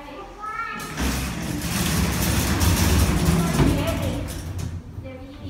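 Cart wheels rattle and rumble over a metal floor.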